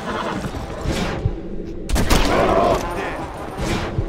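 Bears growl and roar.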